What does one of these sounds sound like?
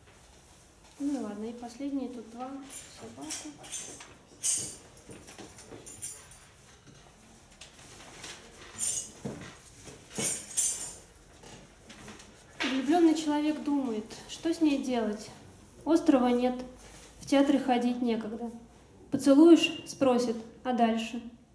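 A woman reads aloud into a microphone, heard through loudspeakers in an echoing room.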